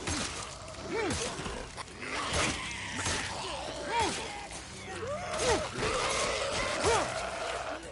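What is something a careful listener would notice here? A bat strikes flesh with heavy thuds.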